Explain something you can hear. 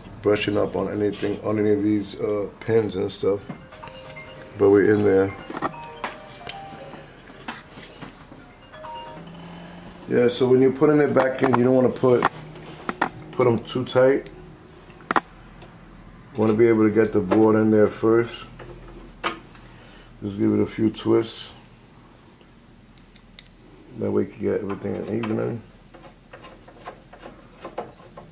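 Plastic wire connectors click and rattle as they are handled.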